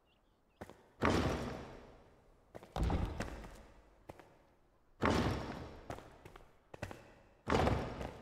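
Stone walls thud heavily into place, each crash fading slowly.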